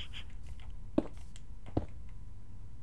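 Stone blocks thud softly as they are placed.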